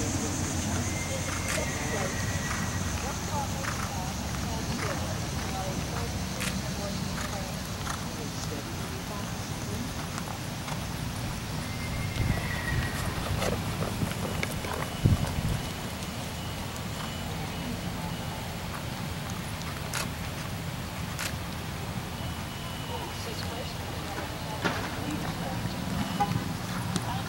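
Outdoors, wind rumbles low across the microphone.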